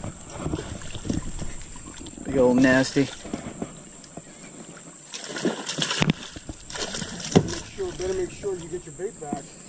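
A fish thrashes and splashes in the water close by.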